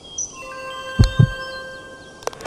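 A golf ball rattles into the cup.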